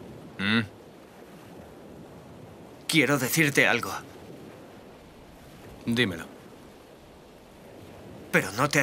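A young man speaks calmly and quietly in short phrases, close by.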